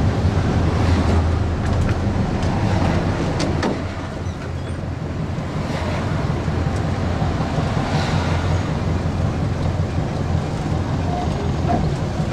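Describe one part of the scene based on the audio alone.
An old bus engine rumbles steadily at low speed.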